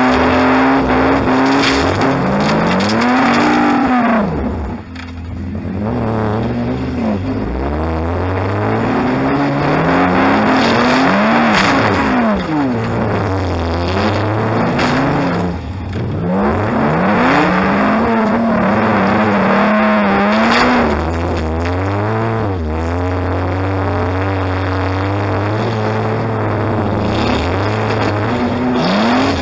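Loose metal in a car's body rattles and clanks over rough ground.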